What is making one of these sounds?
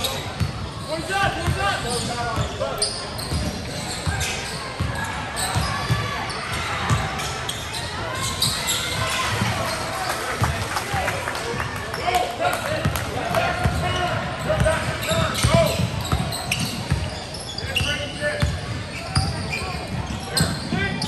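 Young players shout and call out to each other in an echoing gym.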